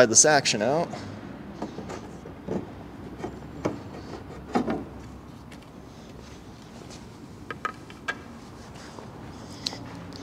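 Wooden parts of a piano knock and click as a man handles them.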